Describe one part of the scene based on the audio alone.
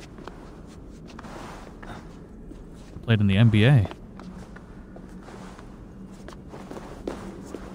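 Hands scrabble on stone while climbing.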